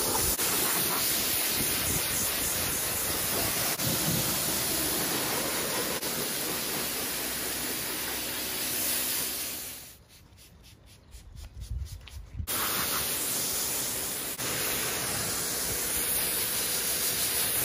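A pressure washer sprays water with a loud steady hiss.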